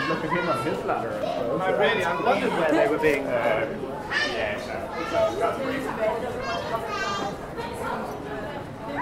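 Footsteps shuffle on a stone walkway.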